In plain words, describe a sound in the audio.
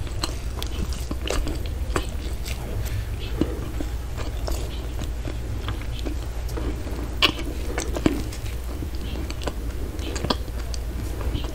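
A woman chews food close to a microphone with wet, sticky mouth sounds.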